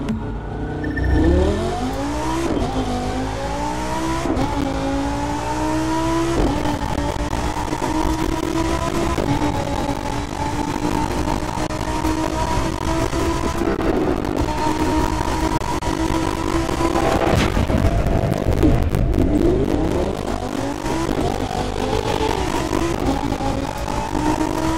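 A sports car engine revs hard, rising in pitch as the car speeds up through the gears.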